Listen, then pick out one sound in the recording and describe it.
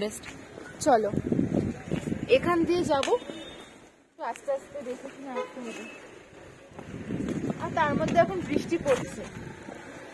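A young woman talks close to the microphone.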